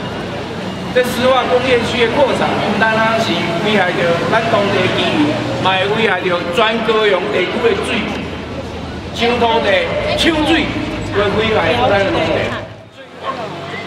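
A man speaks loudly and forcefully into a microphone outdoors.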